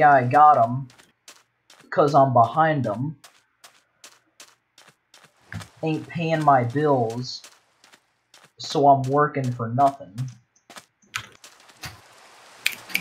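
Footsteps crunch steadily on sand.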